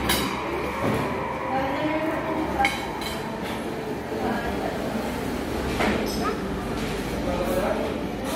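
Forks clink against plates.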